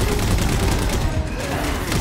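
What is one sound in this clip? Gunfire rattles in bursts nearby.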